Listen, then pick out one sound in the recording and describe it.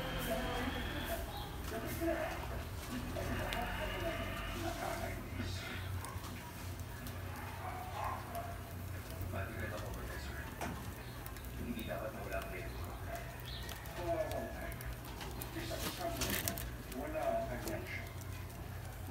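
A wood fire roars and crackles in a stove.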